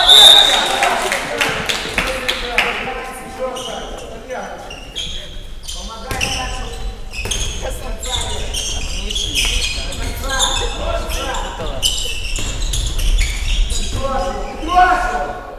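A ball bounces on a wooden floor in a large echoing hall.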